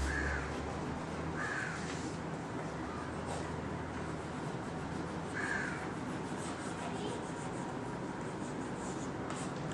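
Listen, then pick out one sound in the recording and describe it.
Chalk scratches and taps on a blackboard.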